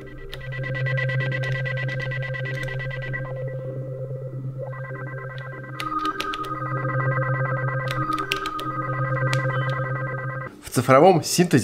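Synth chords hold steady, droning tones.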